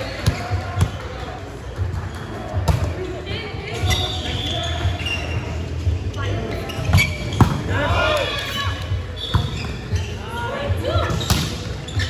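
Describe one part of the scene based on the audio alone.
Men shout and call out to each other in a large echoing hall.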